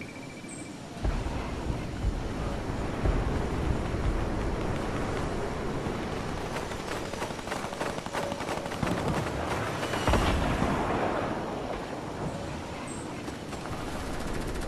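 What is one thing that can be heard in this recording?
Wind rushes steadily while gliding downward.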